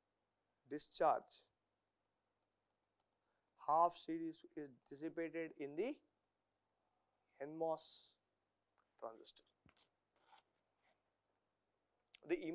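A man lectures calmly into a close microphone, in short bursts with pauses.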